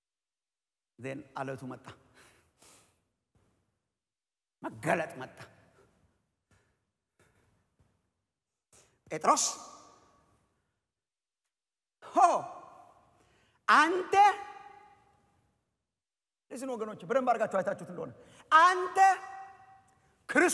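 A man speaks with pauses through a microphone in a large echoing hall.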